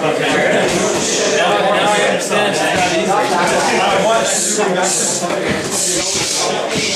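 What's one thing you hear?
A man talks with animation close by, in an echoing room.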